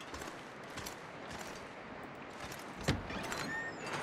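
A metal door swings open.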